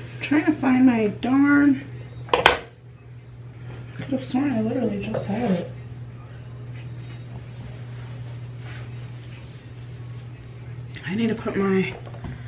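A young woman talks casually close by.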